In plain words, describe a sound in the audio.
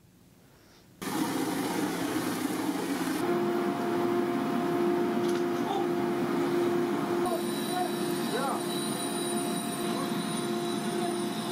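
A concrete spraying machine roars steadily.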